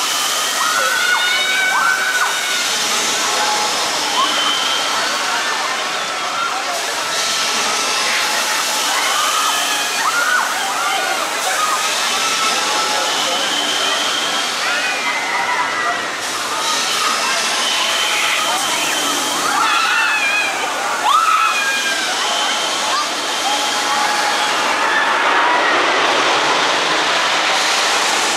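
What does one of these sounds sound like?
Riders on a swinging ride scream and shriek in waves.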